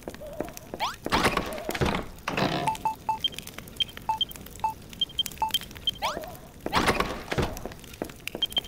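A wooden chest creaks open with a whooshing rush.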